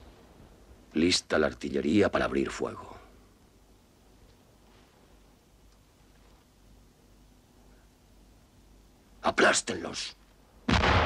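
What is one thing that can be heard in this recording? A middle-aged man speaks firmly, close by.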